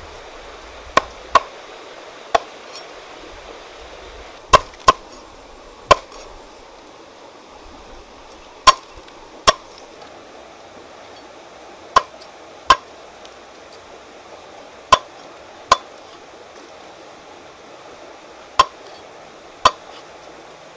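A cleaver chops sharply onto a wooden block.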